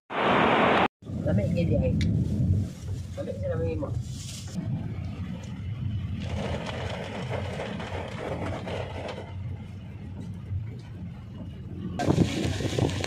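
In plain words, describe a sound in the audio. Rain patters on a car window.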